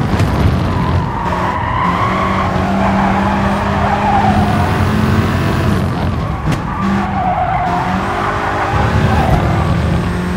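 Tyres squeal through fast corners.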